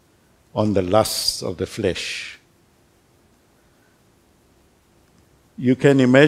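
An older man speaks calmly and clearly through a microphone.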